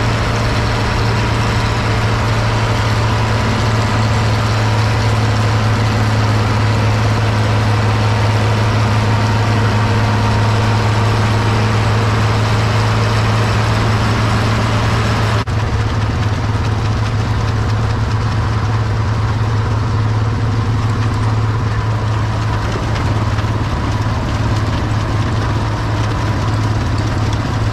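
A manure spreader clatters as its beaters fling muck.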